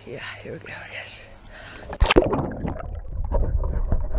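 Water splashes as a person dives under.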